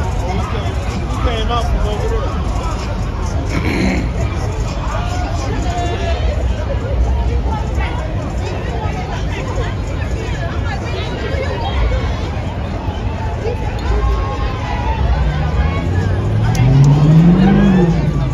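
Car engines rumble and idle close by.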